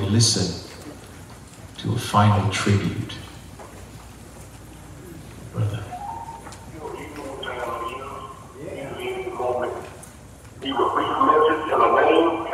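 A man speaks with feeling through a microphone and loudspeakers in a large, echoing hall.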